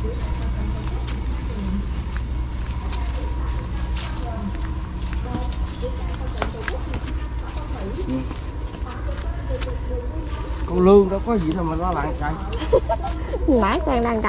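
Plastic bags rustle as they are carried.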